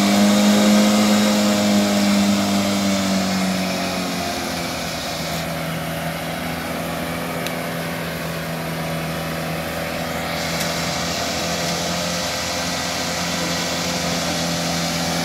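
An off-road vehicle's engine hums steadily as it drives through water.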